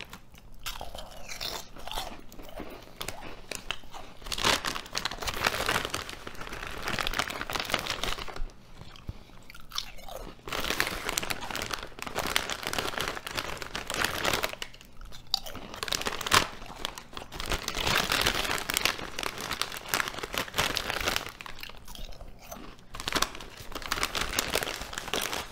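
A man crunches loudly on potato chips close by.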